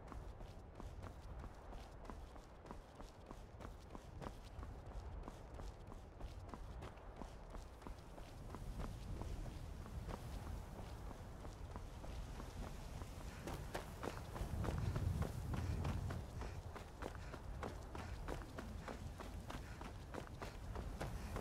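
Footsteps crunch steadily on a stone path.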